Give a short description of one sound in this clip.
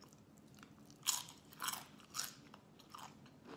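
A woman crunches a tortilla chip close to the microphone.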